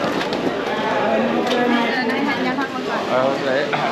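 A crowd chatters in a large echoing hall.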